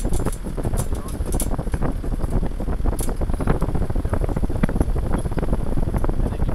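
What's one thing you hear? A vehicle's body rattles and knocks over bumps.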